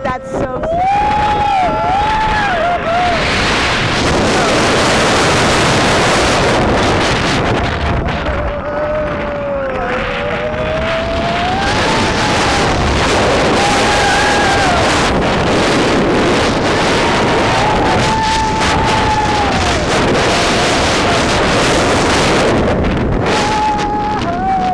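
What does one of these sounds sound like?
Wind roars loudly past a fast-moving roller coaster.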